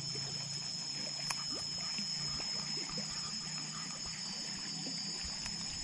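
A fishing lure splashes across the water surface.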